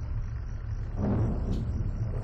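A young man speaks briefly, close to the microphone.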